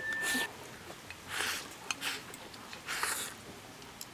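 A young woman chews and smacks her lips.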